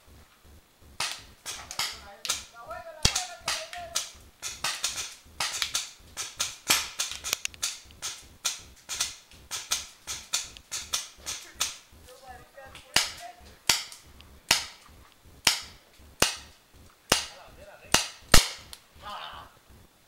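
Paintball markers pop sharply in quick bursts.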